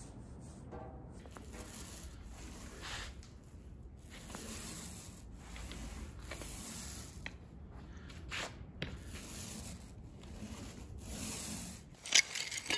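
A paint roller rolls wetly over a floor.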